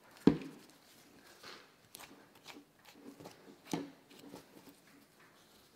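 Hands rub and rustle against fur.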